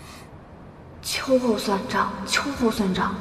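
A young woman speaks angrily and quickly, close by.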